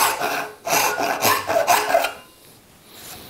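A hand saw cuts through wood with quick strokes.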